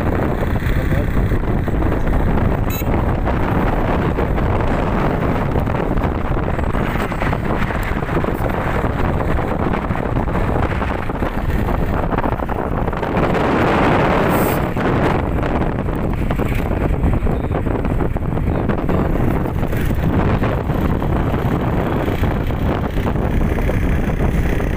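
Wind buffets and rumbles against a moving vehicle.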